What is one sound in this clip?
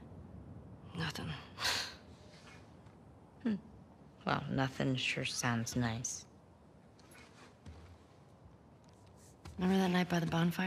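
Another young woman answers quietly.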